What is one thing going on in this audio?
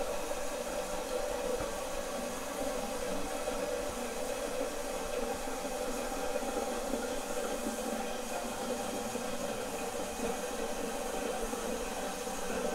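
Water rushes and gurgles as a toilet flushes.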